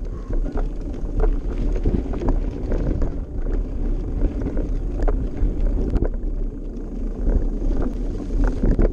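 Wind rumbles loudly over a close microphone outdoors.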